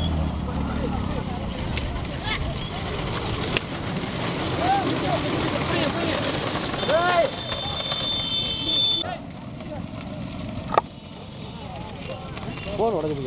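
A crowd of men shout and cheer excitedly outdoors.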